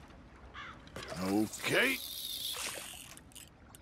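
A fishing line whizzes out as a rod is cast.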